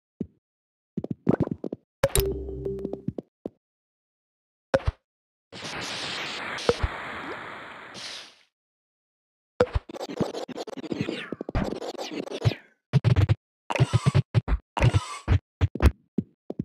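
Game sound effects of small balls clatter and click in quick bursts.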